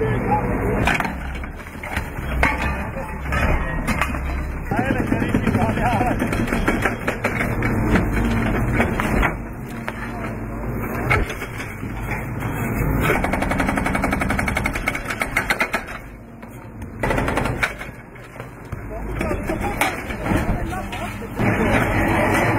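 A hydraulic breaker hammers rapidly on concrete.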